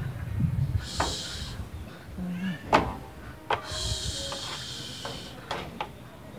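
A wooden pole knocks sharply against something hard.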